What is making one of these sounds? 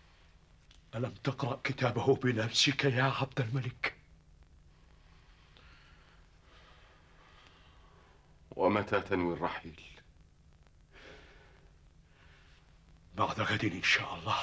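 A middle-aged man speaks with emotion close by.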